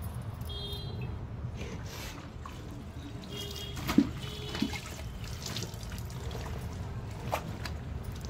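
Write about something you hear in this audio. Wet clothes slosh and splash in a bucket of water.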